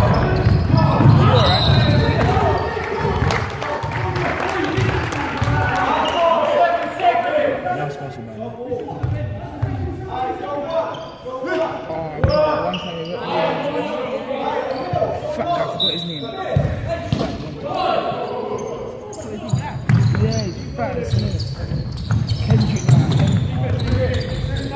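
Basketball players shout and call to each other in a large echoing hall.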